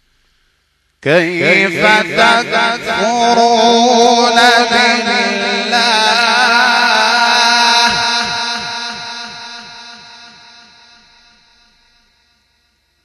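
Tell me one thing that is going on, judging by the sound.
A man chants in a long, drawn-out melodic voice through a loudspeaker, slowly fading at the end.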